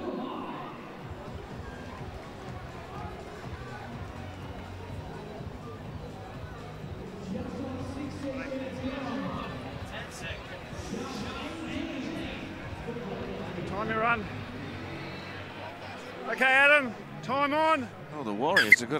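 A large stadium crowd murmurs and cheers in the distance.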